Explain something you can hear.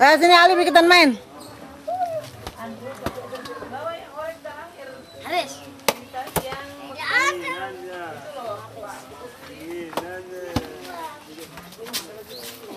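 Young children talk and shout excitedly nearby.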